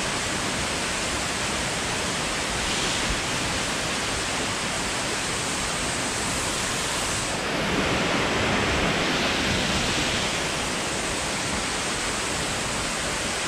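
A waterfall rushes steadily nearby.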